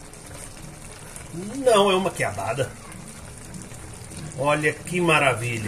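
A wooden spoon scrapes and stirs through food in a pan.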